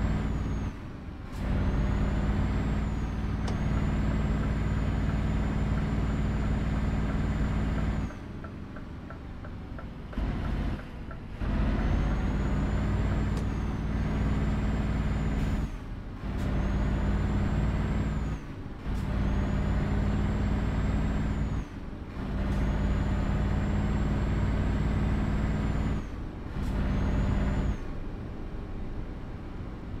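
A truck's diesel engine rumbles steadily, rising and falling as the gears change.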